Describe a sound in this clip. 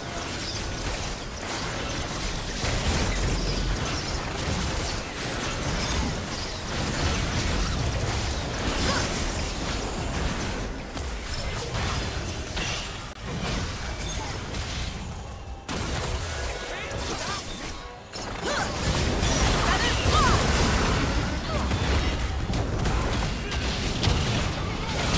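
Magic spells and weapon strikes crackle and clash rapidly in a fantasy battle.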